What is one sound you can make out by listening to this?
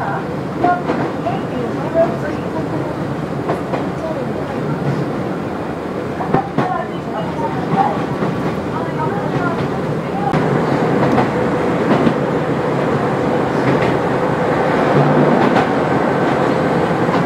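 Train wheels click and squeal over rail joints.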